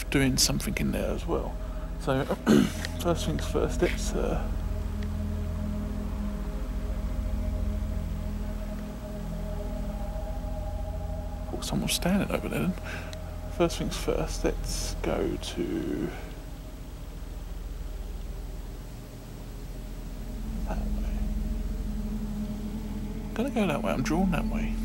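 A man speaks quietly and close by, in short bursts.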